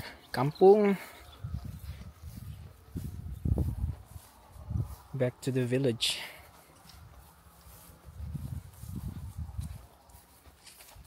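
Footsteps tread softly through grass.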